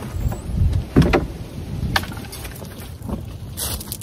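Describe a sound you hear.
A wooden door thuds shut.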